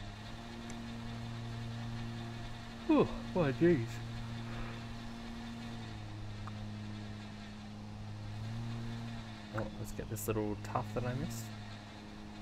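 A riding lawn mower engine hums steadily.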